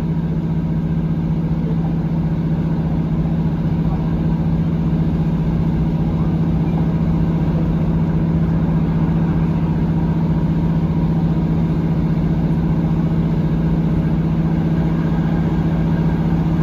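A train hums and rumbles steadily from inside a carriage.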